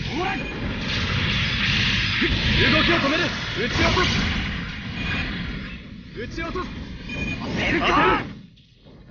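Energy beams blast and crackle loudly.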